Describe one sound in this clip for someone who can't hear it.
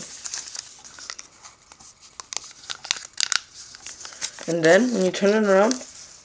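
Fingers crease and rustle a sheet of origami paper.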